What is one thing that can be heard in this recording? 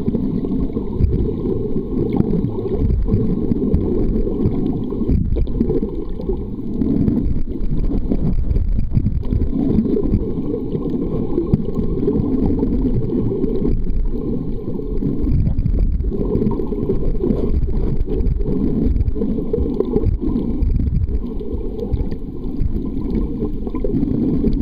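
Water churns in a low, muffled rumble, heard from underwater.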